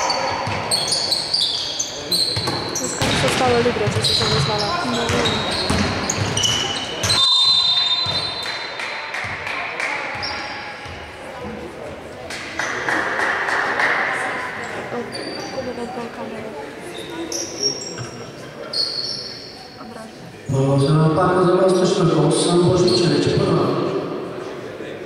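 Players shout and call out in a large echoing hall.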